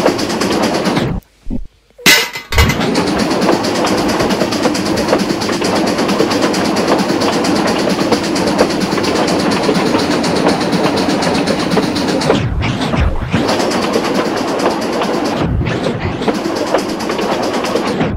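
A steam locomotive chuffs and hisses as it runs along the track.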